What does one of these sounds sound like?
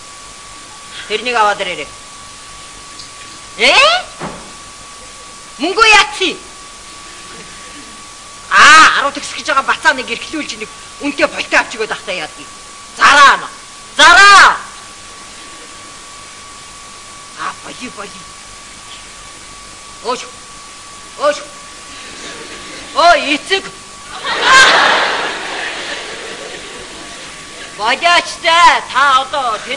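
A middle-aged woman speaks expressively, with sweeping rises and falls in pitch.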